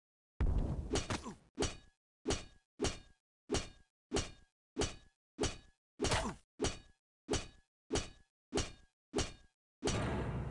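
A heavy weapon strikes a metal target in quick, even blows.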